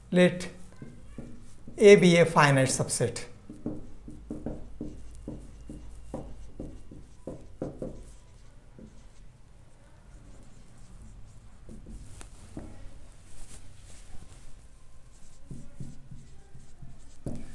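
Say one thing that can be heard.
A marker squeaks and taps as it writes on a whiteboard.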